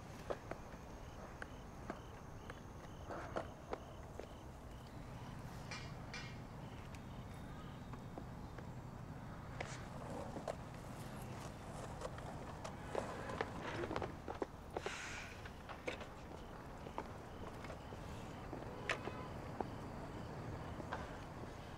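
Skate wheels clack and scrape on the ground.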